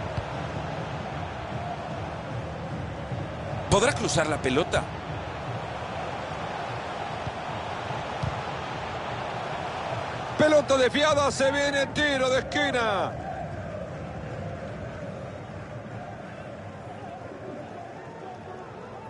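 A large stadium crowd roars steadily outdoors.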